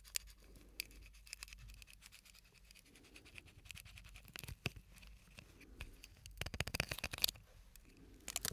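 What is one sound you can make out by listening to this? Fingers tap and crinkle a small plastic object close to a microphone.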